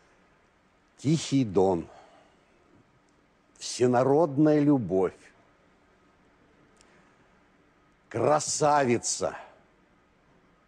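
A middle-aged man speaks calmly into a microphone in short bursts.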